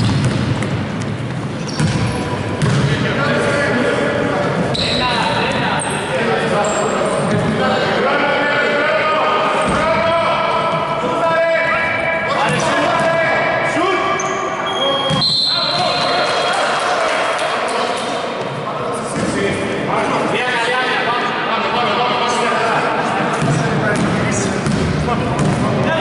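A basketball thumps on a wooden floor.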